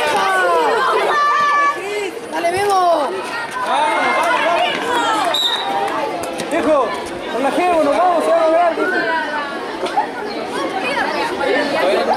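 A ball thumps off a hard court as it is kicked.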